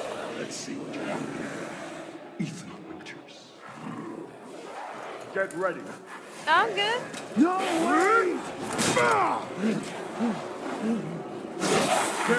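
A man shouts taunts in a gruff, theatrical voice.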